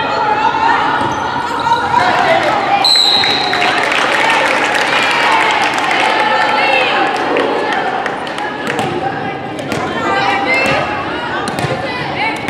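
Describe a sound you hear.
Sneakers squeak on the hardwood floor.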